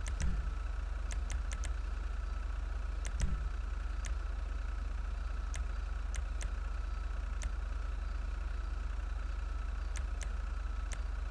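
A menu ticks with short clicks as the selection moves.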